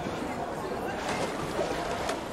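Water splashes and bubbles briefly.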